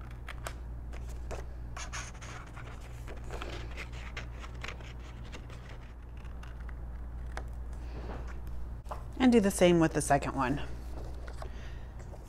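Paper rustles as it is turned in the hands.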